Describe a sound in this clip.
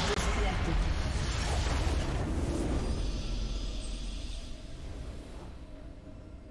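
A game's victory fanfare swells loudly and fades away.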